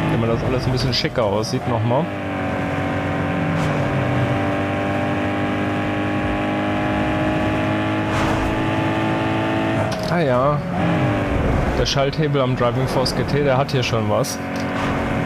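A racing car engine roars at high speed, holding a steady pitch.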